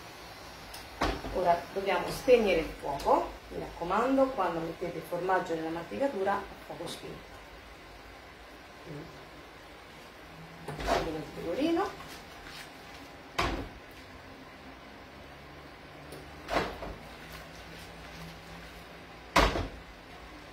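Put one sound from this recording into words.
A spatula clanks against a pan.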